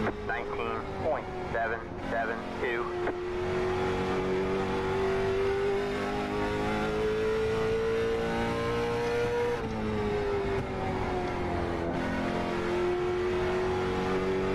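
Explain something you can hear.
A racing car engine drones steadily, its pitch rising and falling with the gears.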